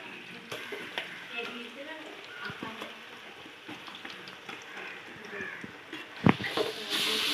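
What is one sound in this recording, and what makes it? A metal spoon knocks and scrapes against the rim of a pot.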